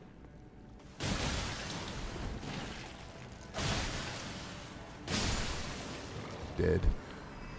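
A blade swings through the air with heavy whooshes.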